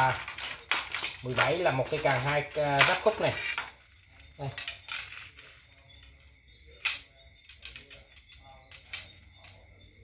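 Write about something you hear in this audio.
Fishing rods clack and rattle against each other as they are handled.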